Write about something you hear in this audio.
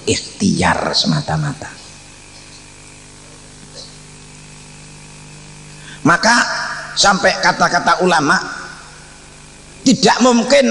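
An elderly man speaks forcefully into a microphone, heard through loudspeakers.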